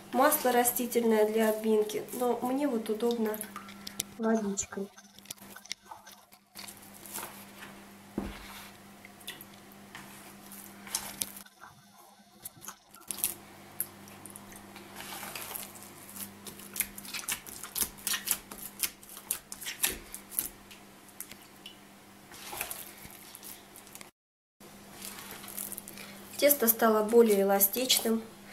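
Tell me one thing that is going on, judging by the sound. Hands knead and squelch soft, sticky dough in a bowl.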